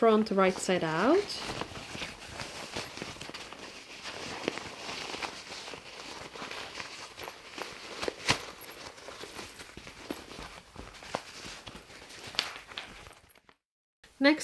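Fabric rustles and crinkles as it is folded and turned.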